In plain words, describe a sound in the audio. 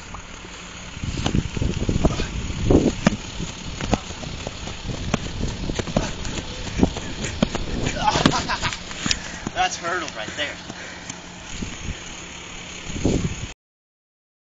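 Shoes thud and scuff on grass as a young man jumps over hurdles.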